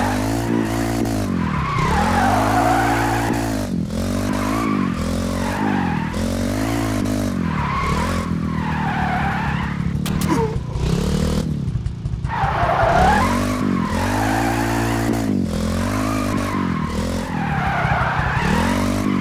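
A motorcycle engine revs up and down repeatedly as it shifts through gears.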